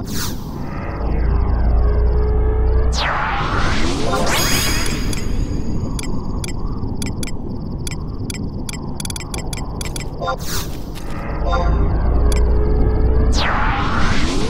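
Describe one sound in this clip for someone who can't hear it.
A magic spell hums and builds up with a low rumble.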